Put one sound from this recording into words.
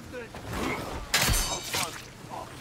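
A knife strikes with a sharp, quick thud.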